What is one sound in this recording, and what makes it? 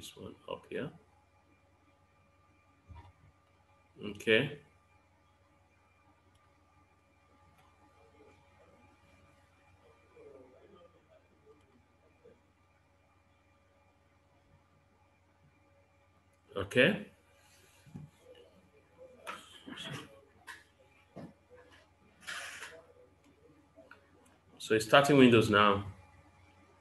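A man speaks calmly and close to a microphone, in short bursts with long pauses.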